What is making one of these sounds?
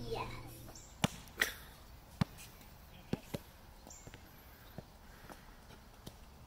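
A tennis ball is struck by a racket.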